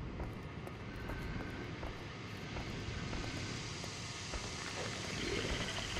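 Heavy footsteps tread steadily on a hard floor.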